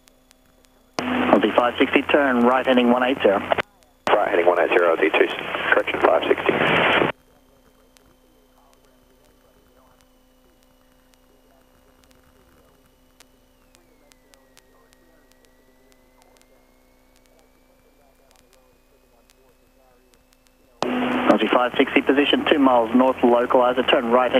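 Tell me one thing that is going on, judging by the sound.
A young man speaks through a headset intercom.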